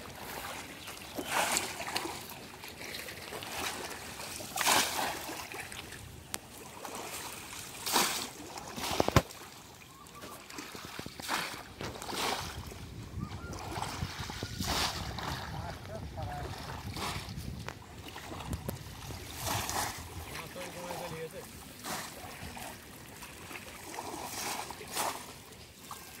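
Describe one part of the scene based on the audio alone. A bamboo fish trap splashes as it plunges into shallow water.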